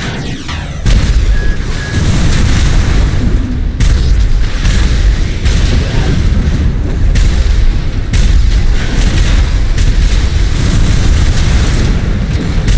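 Thrusters roar loudly.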